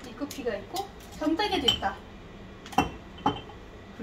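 Glass cups clink softly.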